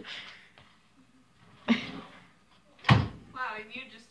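A wooden drawer slides open with a knock.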